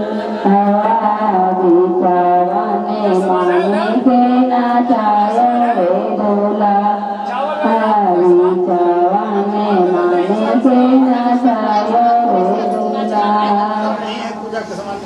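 A group of women sing together in a slow, steady chant.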